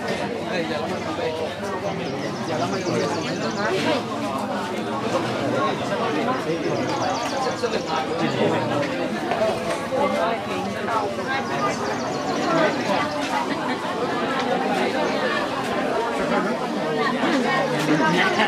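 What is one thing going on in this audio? A crowd of men and women chatter close by, outdoors.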